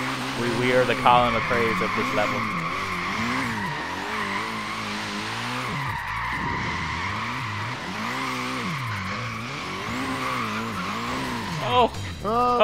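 Tyres squeal in a long drifting screech.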